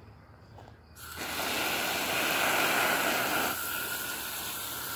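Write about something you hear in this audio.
Water sprays from a hose nozzle onto soil.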